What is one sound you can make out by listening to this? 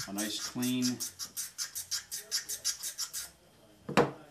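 A blade rubs back and forth on a sharpening stone in quick, even strokes.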